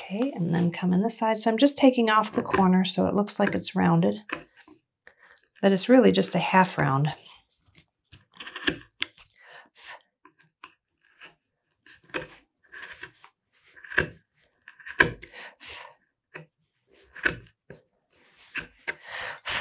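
A chisel scrapes and cuts into wood in short strokes.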